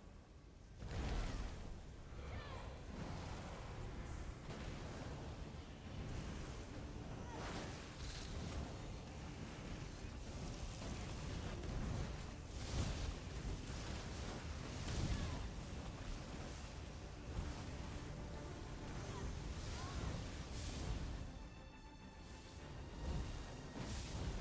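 Magic blasts and impacts thump repeatedly.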